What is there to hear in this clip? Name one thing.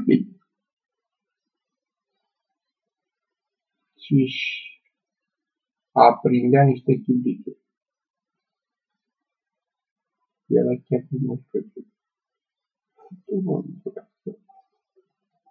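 A middle-aged man speaks calmly in short bursts, close to the microphone.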